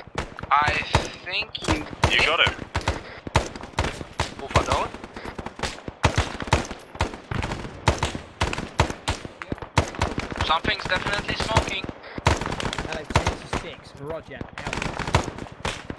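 Gunshots crack in rapid bursts outdoors.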